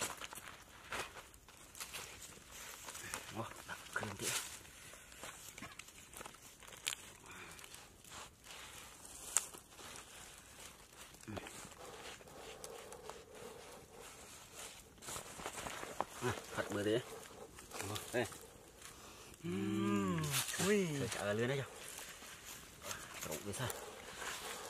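Large leaves rustle and crinkle as hands fold them.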